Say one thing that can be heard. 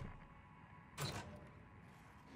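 A hard plastic case lid clunks open.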